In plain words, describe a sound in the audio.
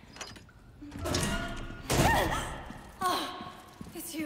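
A young woman speaks in startled surprise, close by.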